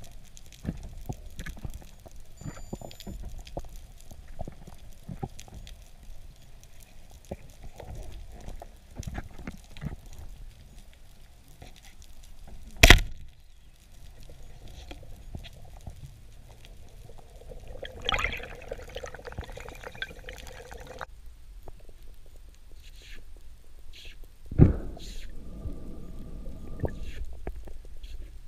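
Underwater crackling and hissing surrounds the listener throughout.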